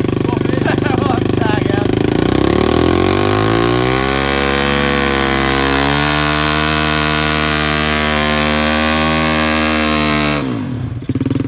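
A dirt bike engine idles with a rattling putter, then revs up and holds a steady high drone before cutting out.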